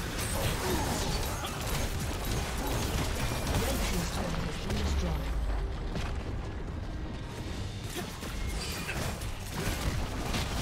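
Spell effects and attacks clash and crackle in a busy fight.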